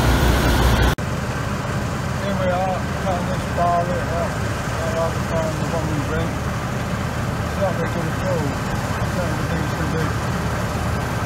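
A combine harvester hums in the distance.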